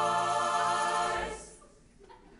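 A large choir sings a sustained chord that rings out in an echoing hall.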